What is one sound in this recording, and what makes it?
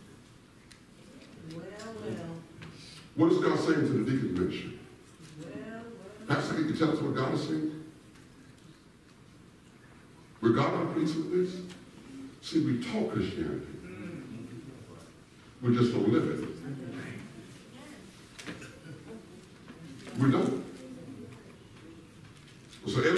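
A man speaks through a microphone in a large echoing hall, in bursts with pauses.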